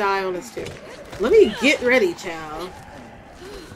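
A young woman exclaims loudly and with animation into a microphone.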